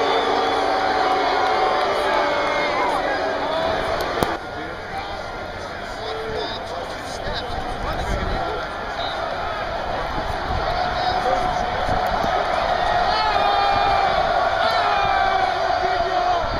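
A large stadium crowd cheers and roars in the open air.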